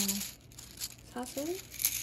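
Plastic rings clatter against each other.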